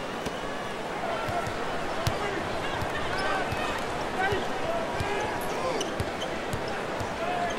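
A basketball bounces on the court in a steady dribble.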